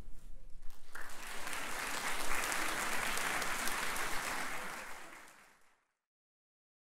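An audience applauds loudly, then the clapping fades.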